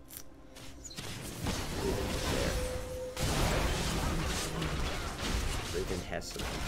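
Game fighting effects clash and crackle.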